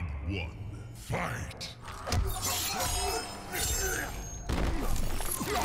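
Heavy punches and kicks land with loud thuds.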